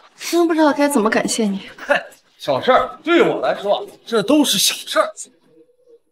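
A young man speaks with feeling, close by.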